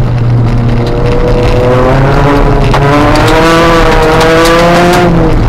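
A car engine roars loudly from inside the car, its pitch rising and falling as it revs.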